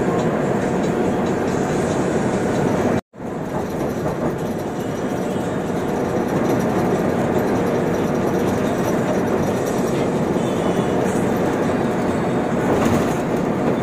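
Tyres rumble steadily over a smooth road inside a moving car.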